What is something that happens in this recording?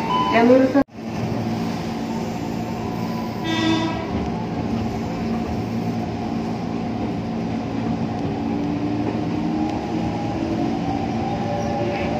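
A train rumbles steadily along the tracks from inside a carriage.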